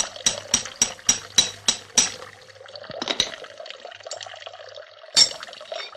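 A hammer taps in quick, sharp blows.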